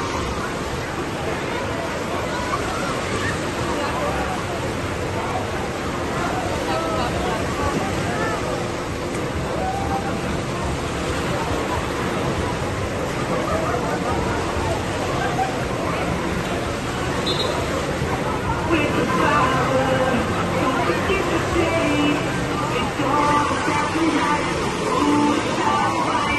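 A crowd of people shouts and chatters over the water.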